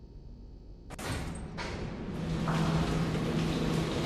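A heavy metal gate rattles and grinds as it slides open.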